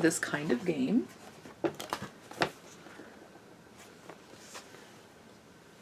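Paper rustles as a large sheet is unfolded.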